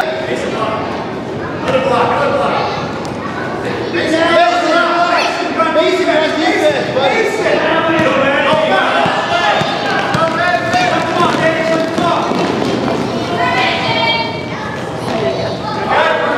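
Children shout and call out excitedly in a large echoing hall.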